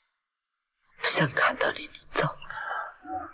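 A young woman speaks coldly and firmly, close by.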